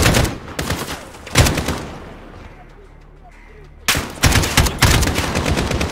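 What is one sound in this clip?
Gunshots ring out in loud bursts, with a short lull between them.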